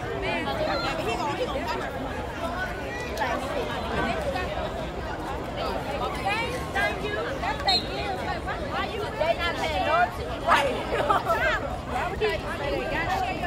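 Young men on the sideline shout and talk loudly nearby.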